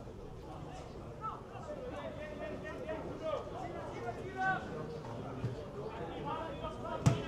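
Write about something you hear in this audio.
Spectators murmur and call out nearby, outdoors.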